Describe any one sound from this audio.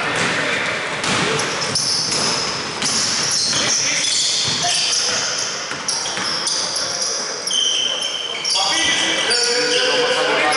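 Basketball shoes squeak on a hardwood court in an echoing gym.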